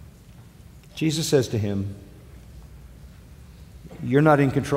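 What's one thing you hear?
An elderly man speaks slowly and deliberately through a microphone.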